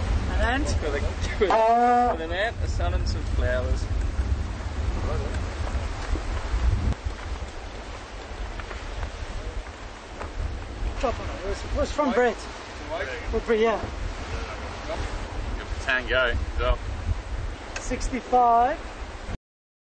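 Men talk and laugh cheerfully nearby.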